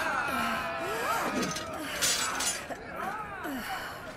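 A sword clatters onto stony ground.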